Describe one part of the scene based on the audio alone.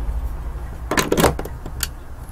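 A lamp switch clicks.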